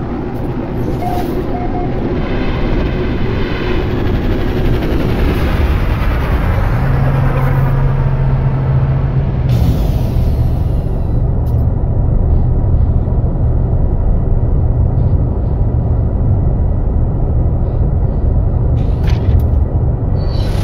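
A spacecraft engine rumbles deeply and steadily.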